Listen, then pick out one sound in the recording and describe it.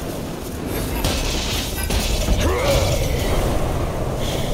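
Thunderous crackling blasts of lightning burst and echo.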